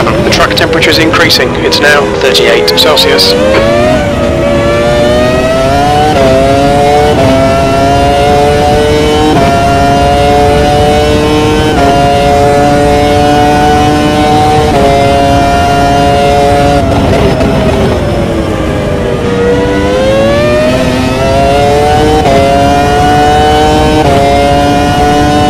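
A racing car engine screams, rising in pitch and dropping sharply at each gear change.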